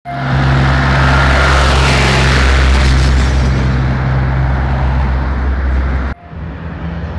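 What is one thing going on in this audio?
A tractor engine rumbles close by.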